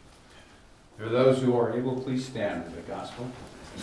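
An older man speaks clearly and steadily nearby.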